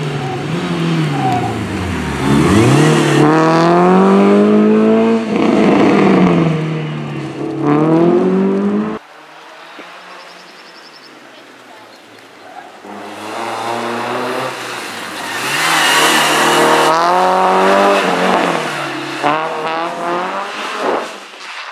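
A rally car engine revs hard, rising and falling in pitch as the car accelerates and brakes.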